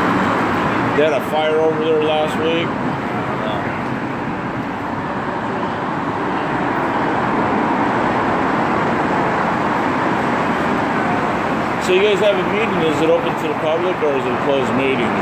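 Men talk nearby in low voices.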